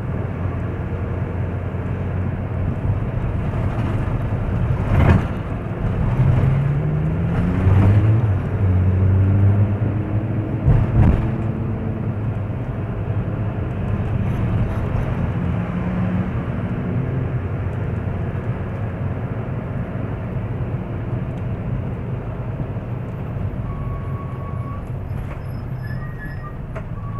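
A car engine hums steadily from inside a moving car.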